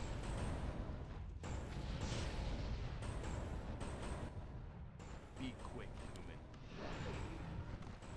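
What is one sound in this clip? Swords and weapons clash repeatedly in a noisy battle.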